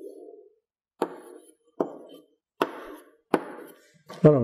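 Chalk taps sharply on a board.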